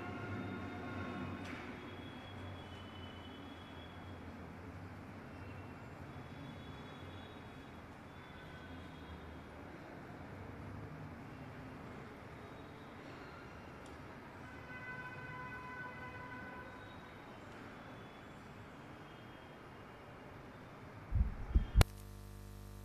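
An electric fan whirs steadily.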